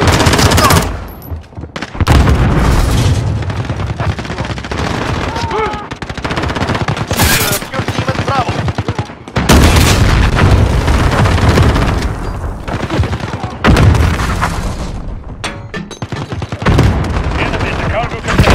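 Shotgun shells click one by one into a shotgun.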